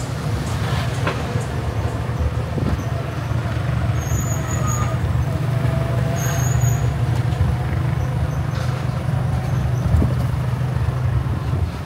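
A small motor rickshaw engine putters steadily up close.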